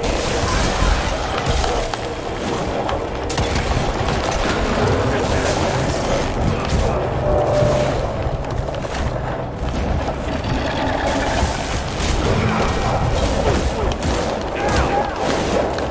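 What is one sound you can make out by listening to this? Heavy blows and blasts crash during a fight.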